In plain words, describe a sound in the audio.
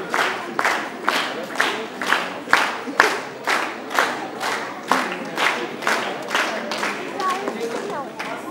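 A crowd of children claps in a steady rhythm in an echoing hall.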